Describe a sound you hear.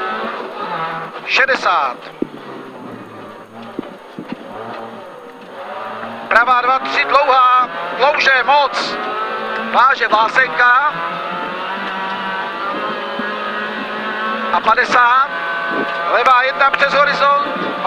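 A rally car engine roars loudly from inside the cabin, revving up and down through the gears.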